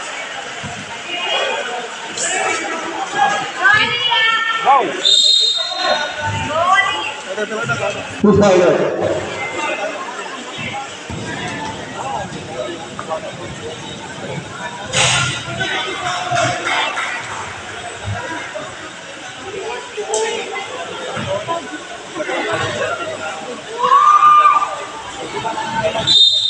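A crowd of spectators chatters and cheers nearby.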